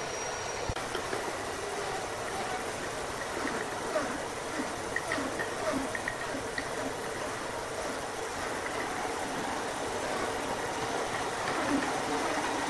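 A band saw blade cuts through a large log.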